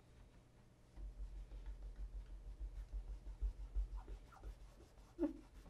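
Fingers rub against a leather shoe.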